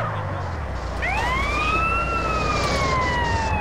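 A siren wails, rising and then slowly falling.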